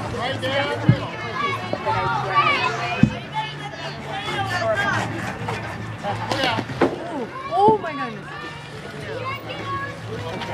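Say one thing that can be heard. Children chatter and call out nearby, outdoors.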